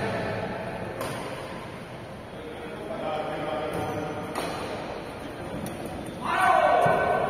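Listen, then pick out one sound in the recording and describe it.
Badminton rackets strike a shuttlecock in a large echoing hall.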